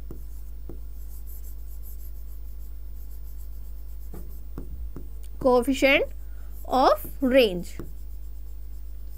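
A marker squeaks and taps on a board.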